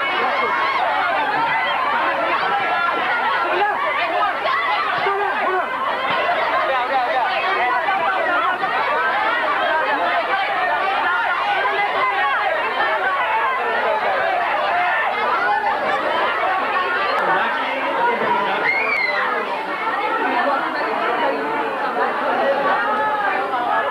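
A large crowd of young people chatters and shouts excitedly all around.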